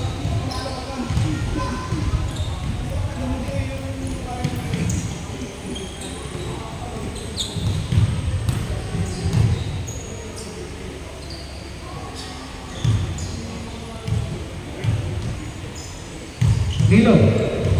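Young people chatter and call out across an echoing hall.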